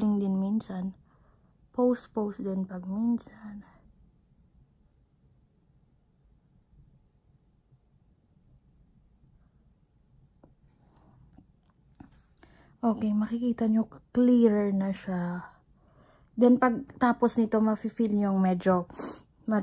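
A young woman talks calmly and close by, in short bursts with pauses.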